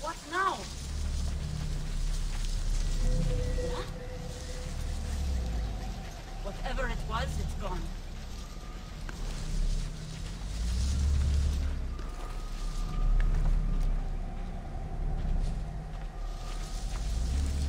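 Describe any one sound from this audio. Footsteps rustle through dense plants.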